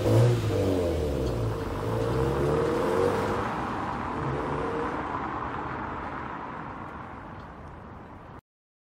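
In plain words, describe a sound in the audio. A turbocharged flat-four sports sedan pulls away and fades into the distance.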